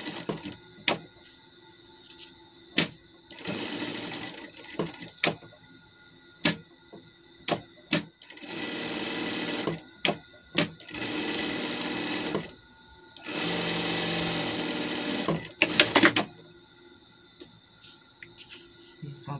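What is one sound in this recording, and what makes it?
Fabric rustles as hands slide it across the table.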